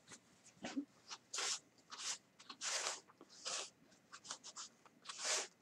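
A cloth rubs and wipes across a hard surface in short strokes.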